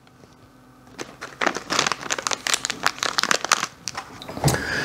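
A paper packet rustles and tears open.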